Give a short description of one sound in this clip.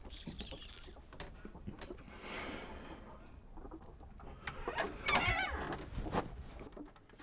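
A man whispers urgently close by.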